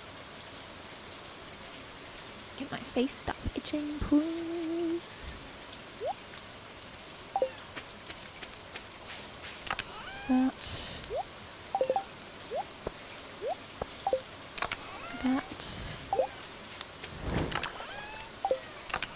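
Rain patters steadily.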